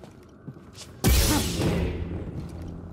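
A lightsaber ignites with a loud burst.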